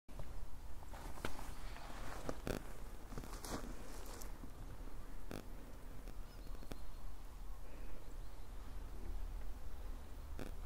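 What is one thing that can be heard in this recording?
Wind rumbles against a microphone outdoors.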